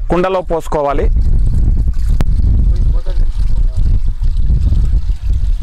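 Liquid pours from a bucket into a clay pot with a steady splashing gurgle.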